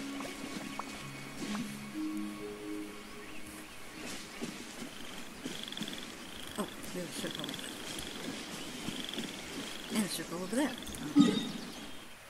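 Footsteps swish through tall grass.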